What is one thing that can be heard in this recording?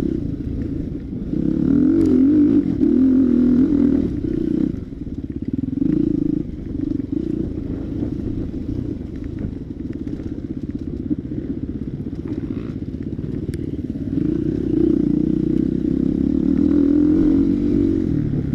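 A dirt bike engine revs loudly up close, rising and falling with the throttle.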